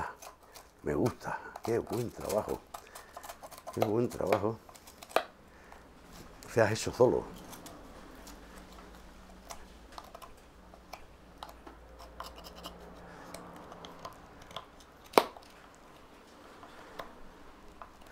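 A hand saw scrapes and cuts wood.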